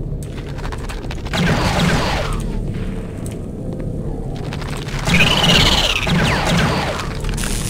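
A game crossbow fires bolts with sharp bursts.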